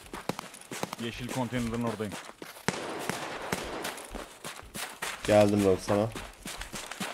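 A man talks close to a microphone, casually.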